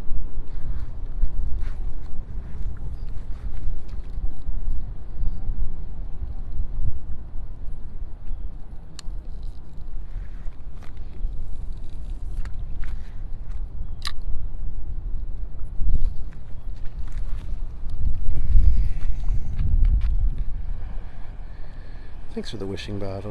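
Wind blows hard outdoors over open water.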